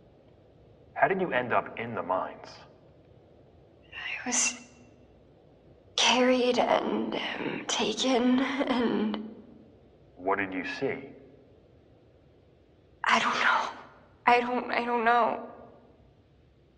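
A young woman speaks shakily and quietly, with pauses.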